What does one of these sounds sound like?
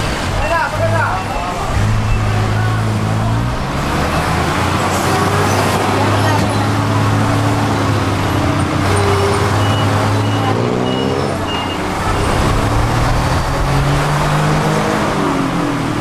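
Traffic noise hums from a busy street outside.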